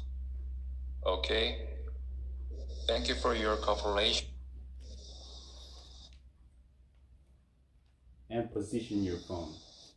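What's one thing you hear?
A young woman speaks calmly through a phone's speaker on an online call.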